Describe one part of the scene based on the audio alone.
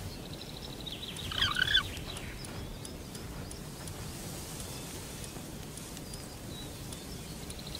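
Soft game menu clicks tick now and then.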